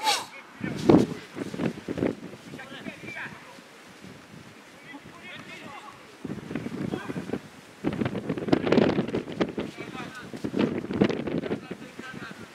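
Young men shout and call to each other across an outdoor football pitch.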